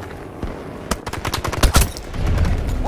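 A rifle shot cracks sharply.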